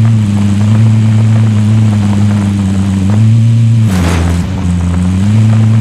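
Tyres rumble and bump over uneven ground.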